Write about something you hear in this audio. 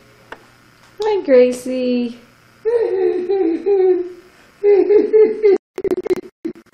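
An elderly woman talks playfully to a baby, close by.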